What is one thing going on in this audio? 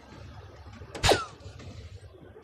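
An electronic dartboard plays a short chiming sound effect.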